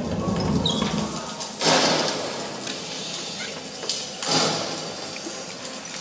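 Fire roars and whooshes as flames burst up.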